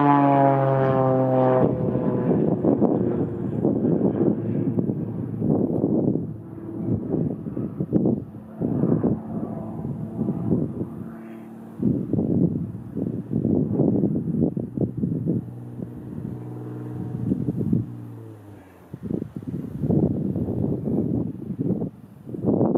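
A small propeller plane's engine drones overhead, its pitch rising and falling as it swoops.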